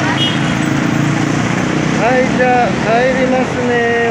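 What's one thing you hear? A motorcycle engine hums as it rides past.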